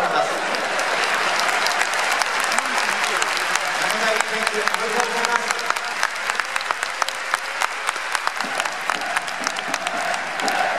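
Many hands clap in quick, uneven bursts.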